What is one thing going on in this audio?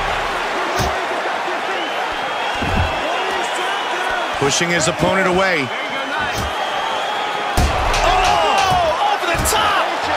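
A crowd cheers and whistles in a large arena.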